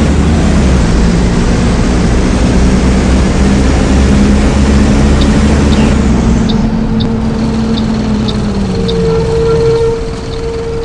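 A bus engine rumbles steadily and then winds down.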